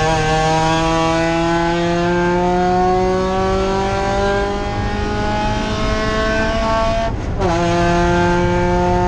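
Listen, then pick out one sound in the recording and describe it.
A racing car engine roars loudly from inside the cabin, its pitch slowly rising through a gear.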